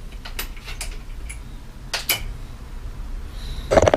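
Metal tools click and clatter close by.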